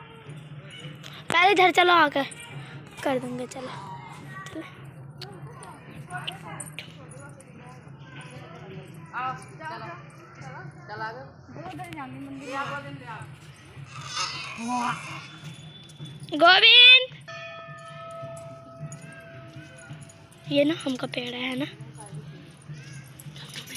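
Young women talk and call out nearby with animation.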